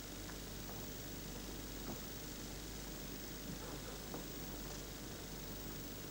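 A cue strikes a snooker ball with a sharp click.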